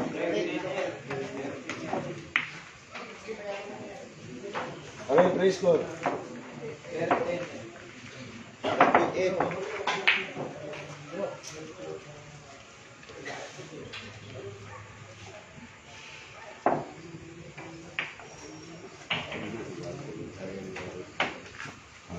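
Several men talk casually nearby in a room.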